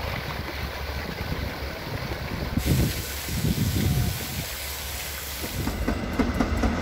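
Water splashes and patters steadily from a fountain.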